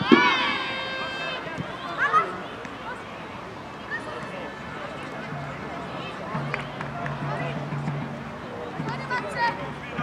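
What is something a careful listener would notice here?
Young players shout and call to each other across an open pitch outdoors.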